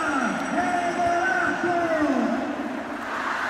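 A large crowd sings a chant together in a big echoing arena.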